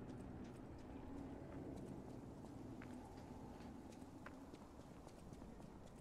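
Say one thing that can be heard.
Footsteps run over stone paving.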